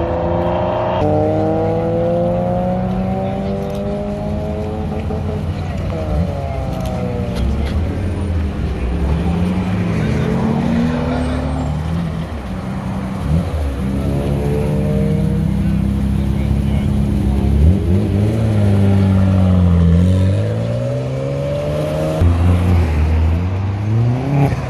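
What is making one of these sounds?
A car engine idles with a deep rumble and revs in bursts close by.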